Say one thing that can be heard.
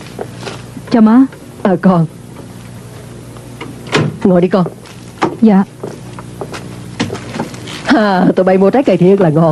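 A middle-aged woman talks.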